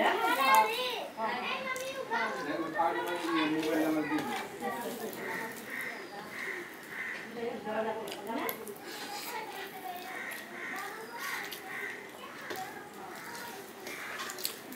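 Fingers squish and mix rice on a metal plate.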